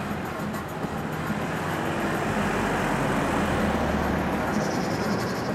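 A car drives past close by on a road.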